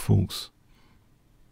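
A man speaks briefly and closely into a microphone.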